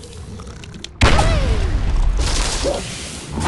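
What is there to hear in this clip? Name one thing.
Wooden and stone pieces clatter and tumble down.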